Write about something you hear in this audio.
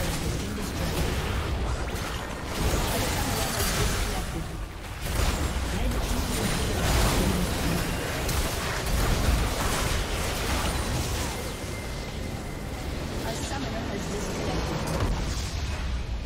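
Game spell effects crash and boom in a dense battle.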